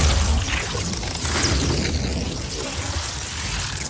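Energy crackles and sizzles.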